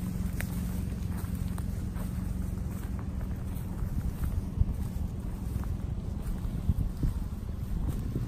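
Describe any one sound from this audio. Tall grass rustles as a person walks through it.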